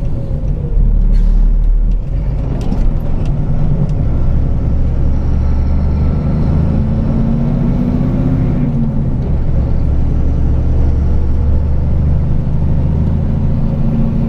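Tyres roll over the road surface with a steady rumble.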